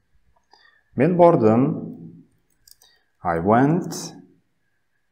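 A man speaks slowly and clearly into a close microphone, reading out short phrases.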